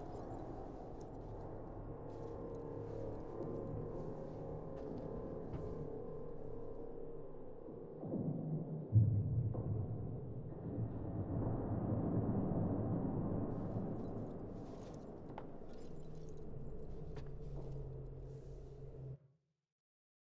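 A low mechanical hum drones steadily, then cuts off.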